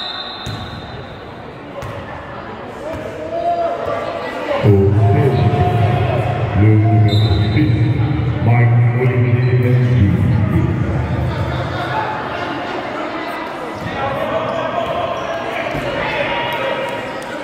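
A crowd of spectators calls out and chatters, echoing around a large hall.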